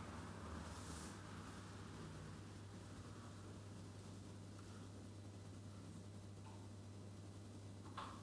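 An elderly man reads out calmly and quietly into a microphone.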